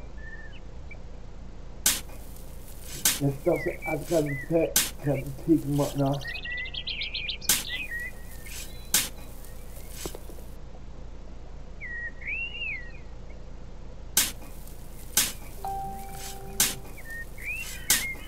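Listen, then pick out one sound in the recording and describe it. A shovel digs into soil with dull thuds.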